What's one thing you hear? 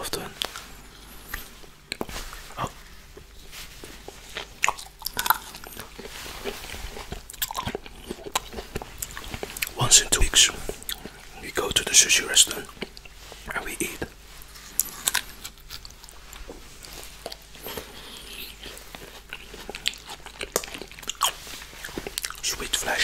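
A man chews juicy fruit wetly and close up.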